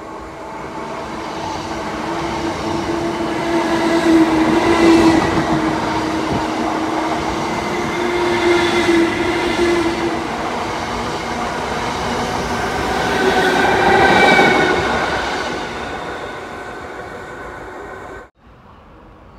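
A train rushes past at speed with a loud roar of wheels on the rails.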